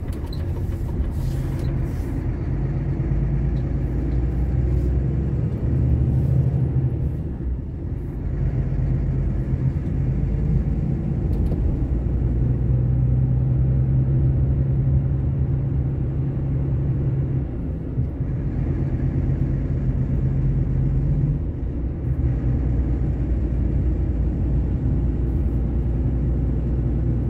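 A vehicle's engine drones as it drives along a road.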